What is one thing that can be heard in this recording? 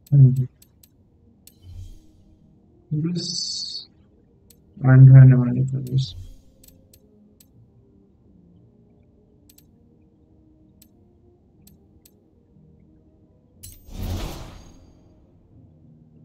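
Short electronic clicks tick as a game menu is scrolled.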